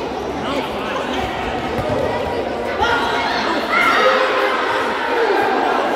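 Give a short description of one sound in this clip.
A crowd of young men shouts and calls out in a large echoing hall.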